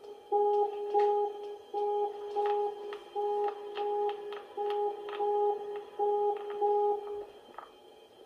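An alarm beeps over and over in quick pairs.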